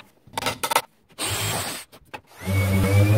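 A power drill whirs as it bores into wood.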